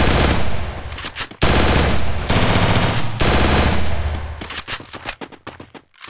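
Footsteps run quickly across hard ground.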